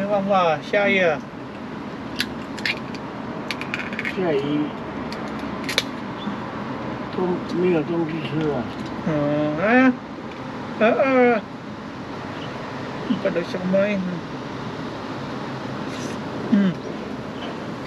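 A young man talks casually nearby, in short bursts.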